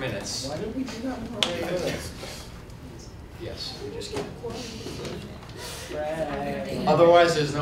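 A man speaks calmly through a microphone, in a room with a slight echo.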